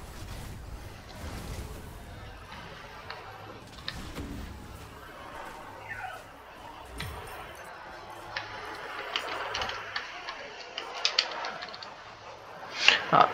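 Magic spells crackle and whoosh in a fast fight.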